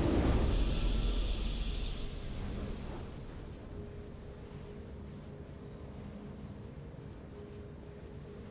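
A triumphant fanfare swells.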